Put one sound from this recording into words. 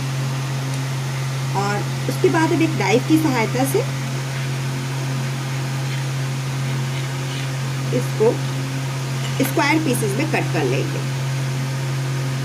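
A knife scrapes against a glass plate while cutting soft dough.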